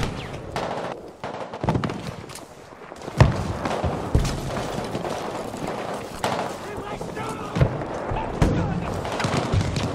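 Gunshots crack and boom at irregular intervals, near and far.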